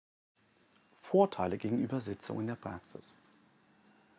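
An older man speaks calmly and clearly into a close microphone.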